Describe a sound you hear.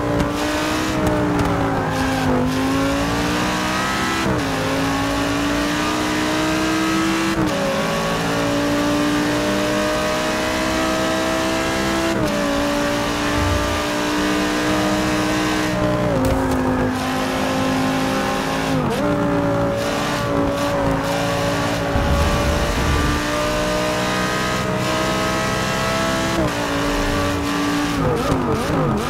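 A racing car engine roars loudly, revving up and dropping with each gear change.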